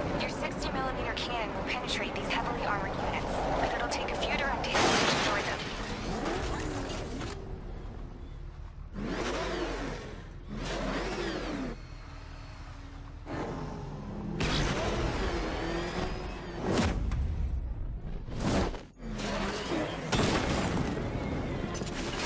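A cannon fires loud blasts.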